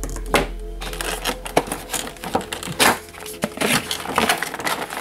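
Plastic packaging crinkles and taps under fingers.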